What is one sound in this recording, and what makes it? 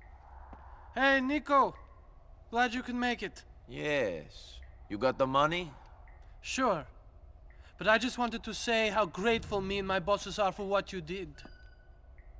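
A middle-aged man greets and talks warmly and with animation close by.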